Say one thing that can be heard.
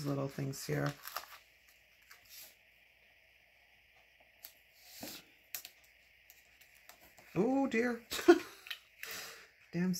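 A sticker peels off its backing sheet.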